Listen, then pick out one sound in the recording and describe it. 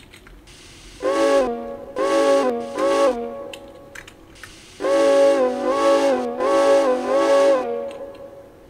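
A steam whistle blows in short, repeated blasts.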